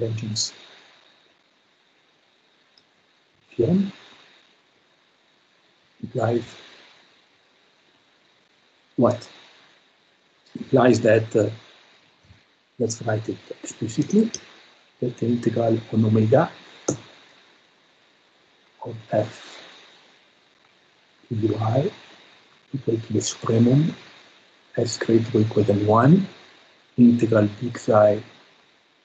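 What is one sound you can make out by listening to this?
A man speaks calmly in short, halting phrases through an online call.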